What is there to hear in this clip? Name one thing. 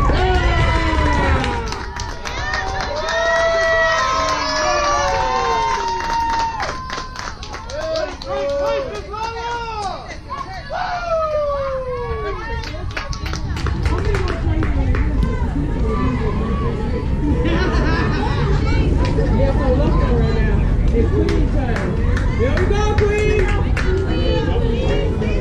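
Young women shout and cheer loudly outdoors.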